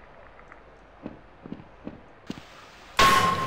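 Footsteps clunk on a hollow surface.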